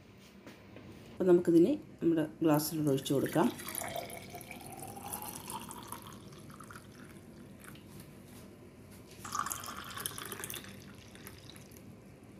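Juice trickles and splashes into a glass.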